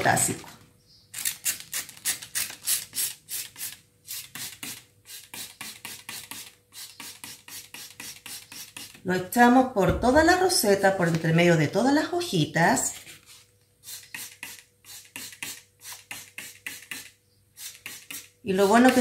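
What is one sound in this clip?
A spray bottle squirts water in quick bursts.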